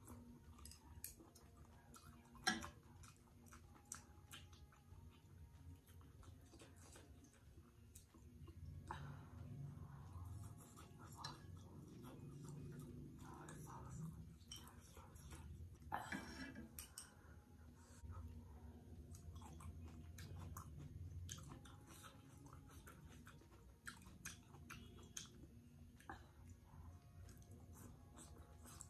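A young woman slurps and chews food close by.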